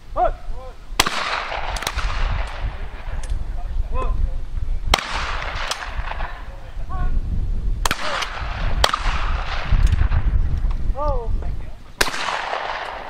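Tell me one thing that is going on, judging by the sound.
Shotguns fire loud blasts that echo across open ground.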